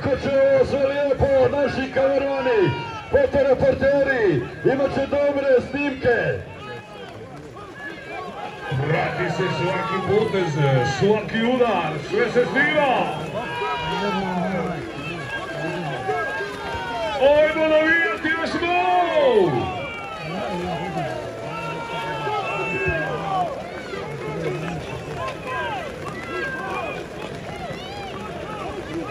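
A crowd of onlookers shouts and calls out outdoors.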